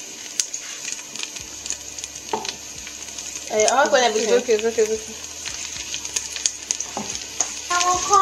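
A wooden spoon scrapes and taps against a metal pot.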